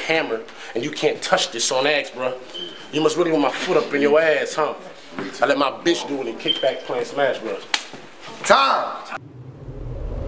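A young man raps loudly and with energy into a microphone.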